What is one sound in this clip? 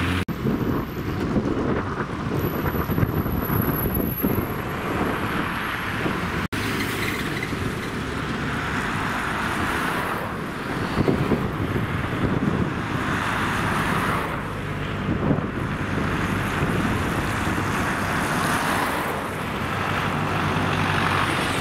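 City traffic rumbles past on a busy road.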